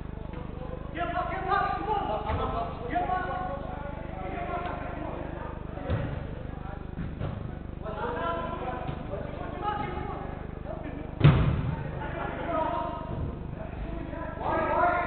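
Men shout and call to each other in a large echoing hall.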